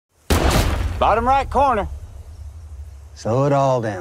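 A rifle shot cracks loudly and echoes away outdoors.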